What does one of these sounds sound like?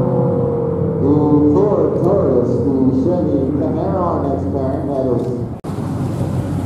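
A car engine revs hard as a car accelerates away.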